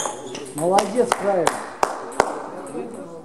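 A table tennis ball clicks sharply back and forth on paddles and a table.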